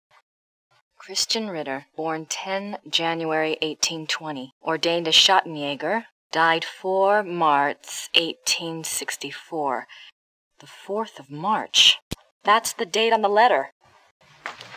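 A young woman reads aloud calmly, close by.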